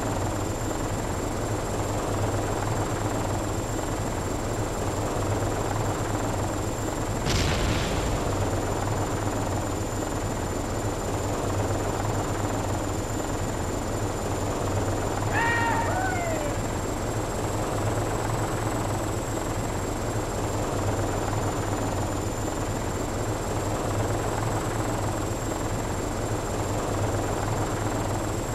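A vehicle engine rumbles steadily and low.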